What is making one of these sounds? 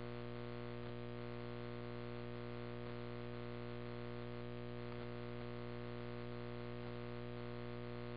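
A fire engine's motor rumbles steadily close by.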